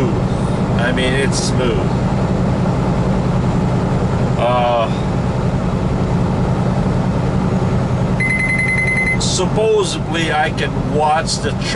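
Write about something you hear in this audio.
A truck engine drones steadily with road noise.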